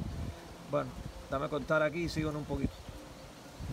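Pigeons coo softly close by.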